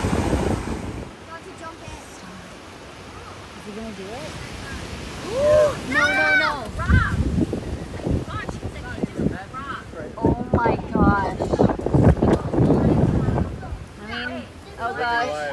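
Waves break against rocks.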